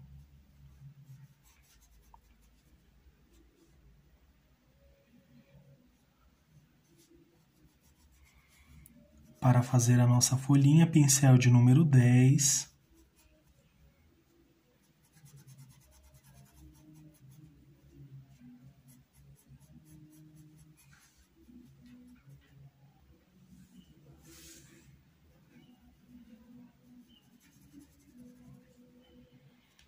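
A paintbrush softly brushes across fabric.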